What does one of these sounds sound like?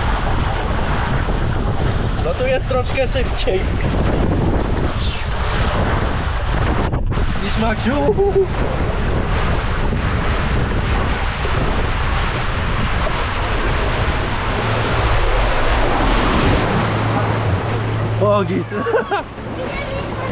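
Water rushes and splashes loudly down a plastic slide.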